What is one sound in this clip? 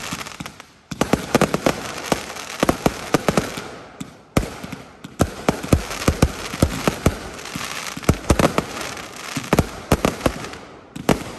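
Fireworks bang and crackle in rapid bursts.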